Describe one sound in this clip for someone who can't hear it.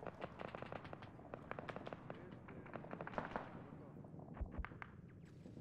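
Footsteps tap quickly on a hard tiled floor.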